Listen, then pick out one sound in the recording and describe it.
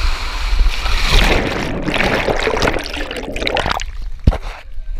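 A body splashes into a pool.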